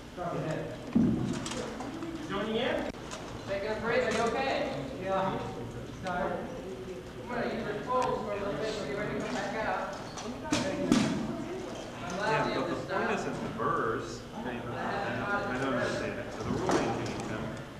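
Padded weapons knock against each other with sharp thuds.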